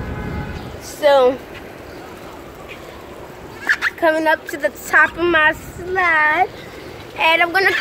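A young girl talks and squeals in a high voice close by.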